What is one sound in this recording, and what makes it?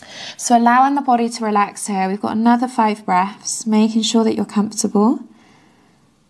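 A woman speaks calmly and clearly, as if giving instructions.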